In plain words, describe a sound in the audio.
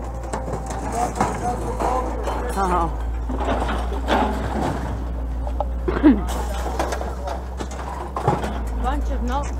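Scrap metal clanks and rattles as it is handled.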